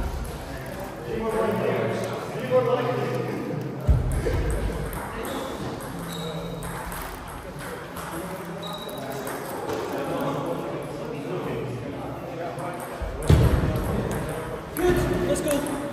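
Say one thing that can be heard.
Men talk casually nearby in an echoing hall.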